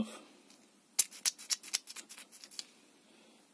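Small metal parts click and tap together close by.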